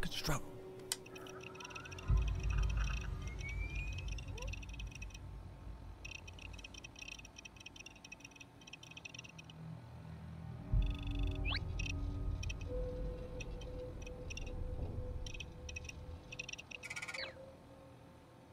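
A handheld device beeps and chirps as it starts up.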